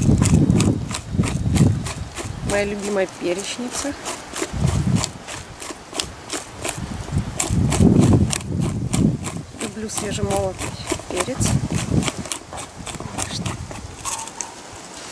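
A pepper grinder crackles rapidly as it is twisted.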